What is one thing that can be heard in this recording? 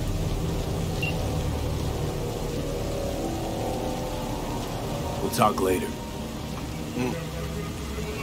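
A man speaks calmly over a phone call.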